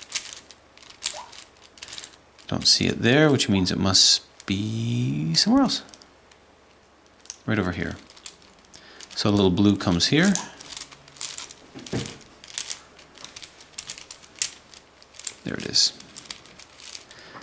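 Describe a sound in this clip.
Plastic puzzle pieces click and clack as they are twisted by hand.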